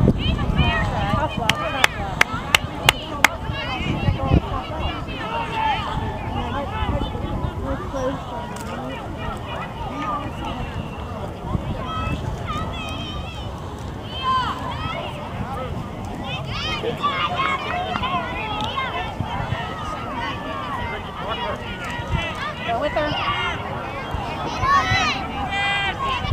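Young girls shout and call out across an open playing field.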